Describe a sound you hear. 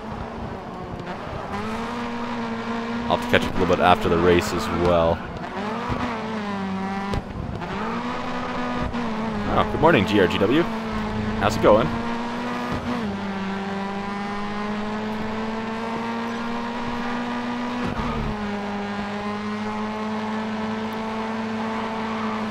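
A race car engine roars steadily, its pitch rising and dropping with gear changes.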